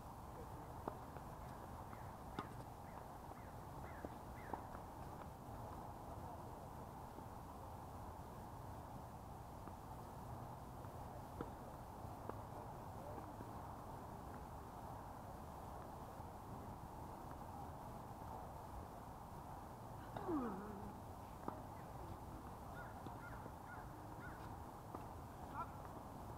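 Tennis balls are struck with rackets in the distance, with faint pops.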